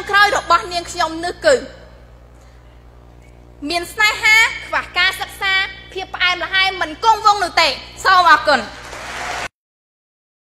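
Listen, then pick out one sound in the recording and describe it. A young woman speaks with animation into a microphone, heard through loudspeakers.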